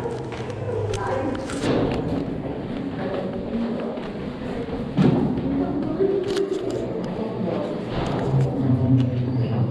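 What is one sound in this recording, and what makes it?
Young people talk quietly nearby.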